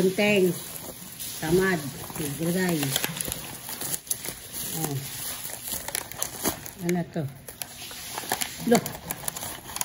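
Cardboard packaging scrapes and rustles as it is opened.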